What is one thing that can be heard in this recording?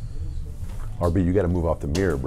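A man speaks with animation close to a microphone.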